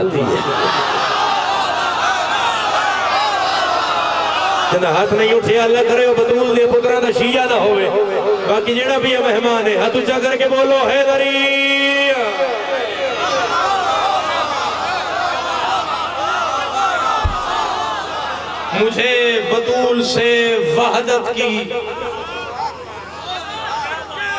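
A young man speaks passionately through a microphone.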